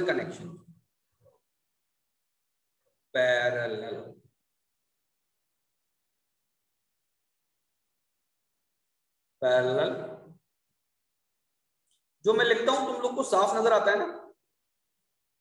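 A man speaks calmly through a microphone on an online call, in short phrases with pauses.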